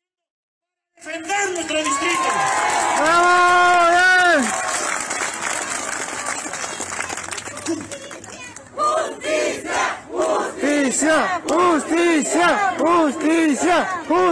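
A crowd shouts and chants outdoors.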